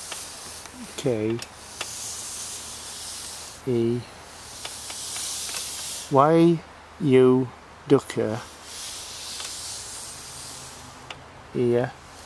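A pointer slides and scrapes softly across a board.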